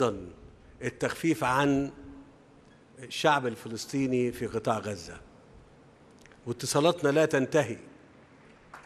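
A man speaks slowly and formally through a microphone in a large hall.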